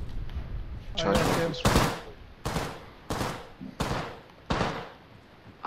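Footsteps thud quickly on a hard floor.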